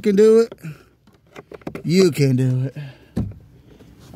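A plastic connector snaps into place.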